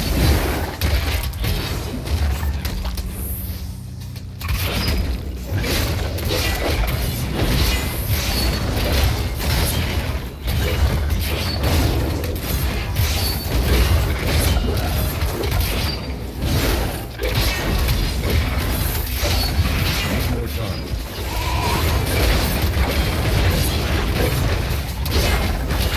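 Spells and weapons clash and crackle in a fast battle.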